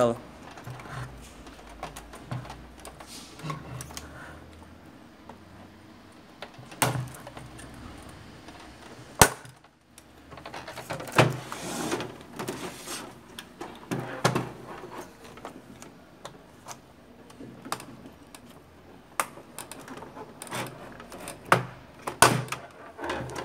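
Plastic clicks and snaps as a metal tool pries at a casing.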